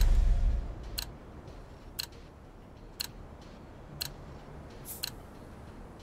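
A game interface ticks once each second.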